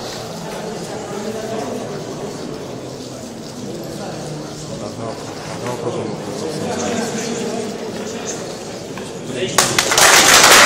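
A crowd of young men murmurs and chatters nearby.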